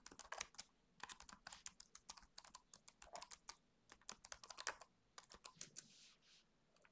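Fingers tap quickly on a computer keyboard.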